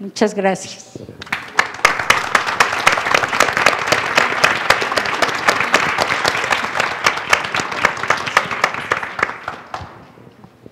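An audience claps, in a large echoing hall.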